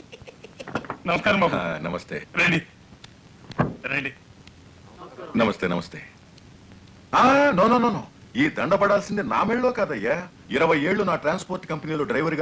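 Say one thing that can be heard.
Men talk with animation close by.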